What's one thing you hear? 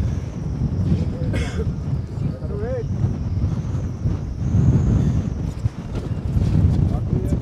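Wind blows hard outdoors, rumbling against the recording.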